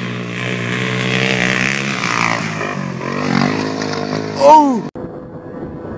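A motorbike engine revs loudly.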